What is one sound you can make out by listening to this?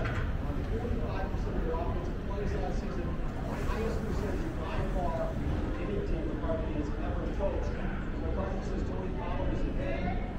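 Food sizzles on a hot grill.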